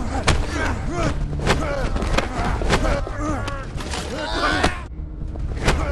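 Two men grunt and strain as they grapple.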